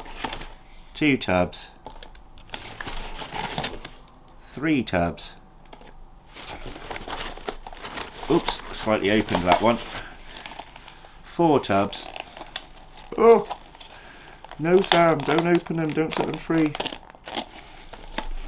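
A plastic tub clicks and taps as it is handled.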